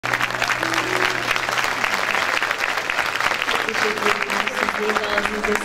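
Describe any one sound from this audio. A large audience applauds loudly in a hall.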